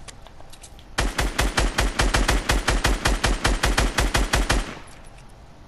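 A rapid burst of gunfire rattles loudly.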